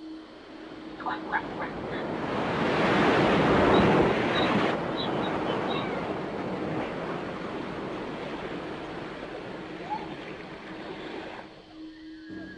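Waves crash and roar against rocks.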